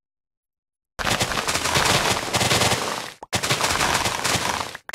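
Leaves are cut and rustle in quick succession in a video game.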